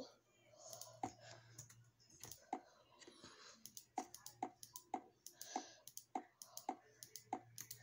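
Blocks are placed in a video game with short, soft popping thuds, one after another.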